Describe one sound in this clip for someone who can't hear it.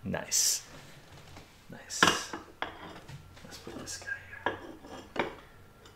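Glass jars clink and knock as they are set down.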